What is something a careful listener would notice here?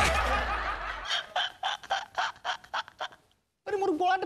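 A young man laughs loudly in bursts.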